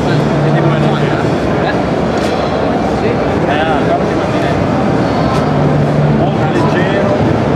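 A crowd chatters loudly all around in a busy hall.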